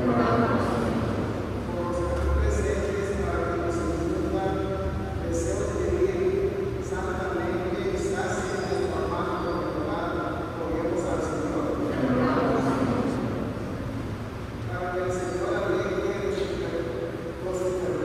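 A man chants steadily through a loudspeaker, echoing in a large hall.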